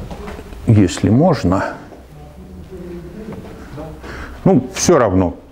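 An elderly man lectures with animation.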